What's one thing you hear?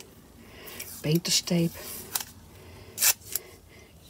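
Tape is pulled off a roll and torn.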